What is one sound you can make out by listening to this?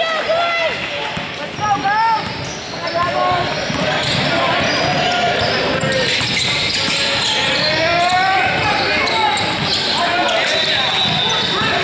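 A basketball bounces on a hardwood floor as players dribble.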